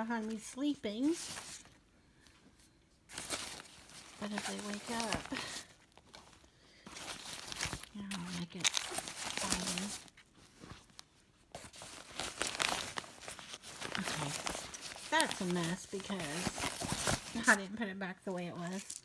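A hand rummages and rustles through items in a fabric bag.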